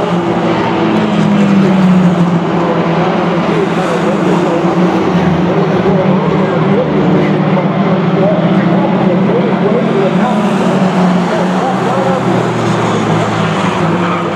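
Four-cylinder mini stock race cars roar past at full throttle.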